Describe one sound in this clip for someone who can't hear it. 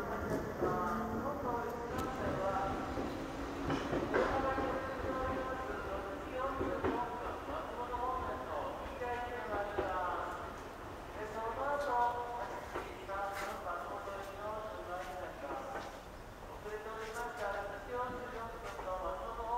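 A train rolls slowly past in the distance.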